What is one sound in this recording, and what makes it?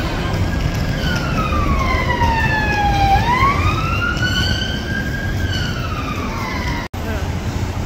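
A police siren wails nearby, rising and falling.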